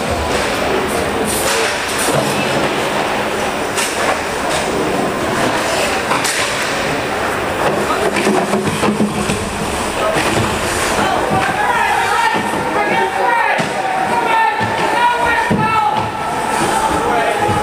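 Hockey sticks clack sharply against the puck and ice.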